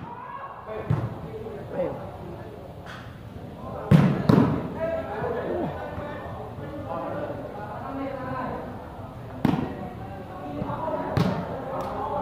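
Hands smack a volleyball.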